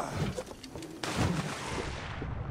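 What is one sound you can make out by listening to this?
Water splashes as a body plunges in.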